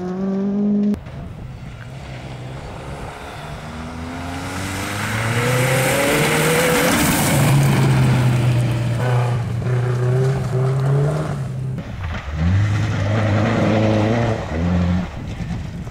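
A second rally car engine roars up, revving hard as it races past and fades away.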